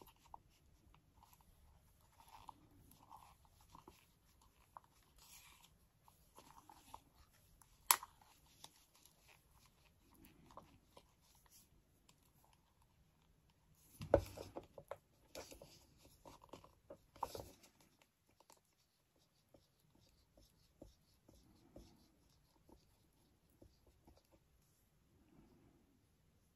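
A wooden stir stick scrapes and taps inside a paper cup.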